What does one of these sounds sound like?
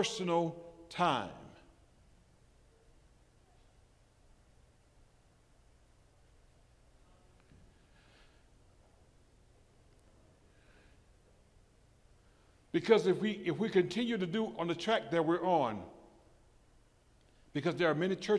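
A man speaks with animation through a microphone, pausing at length.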